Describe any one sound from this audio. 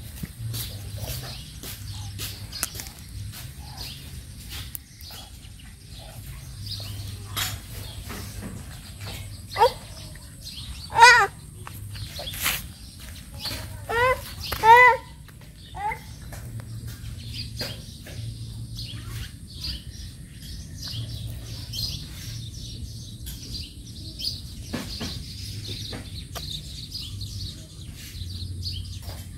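Dogs' paws scuff on dry dirt and paving.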